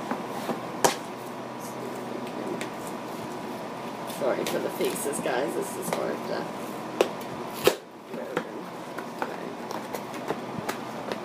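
Paper crinkles and tears as an envelope is opened.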